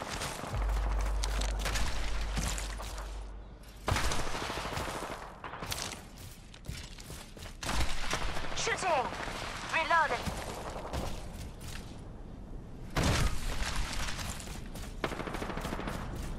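A body slides along rough ground with a scraping rush.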